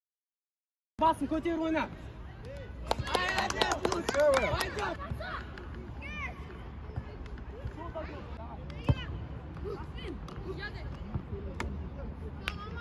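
Boys shout to each other outdoors on a football pitch.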